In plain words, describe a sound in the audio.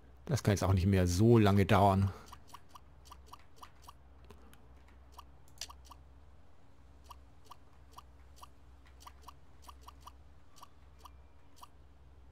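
Short soft clicks sound as blocks snap into place.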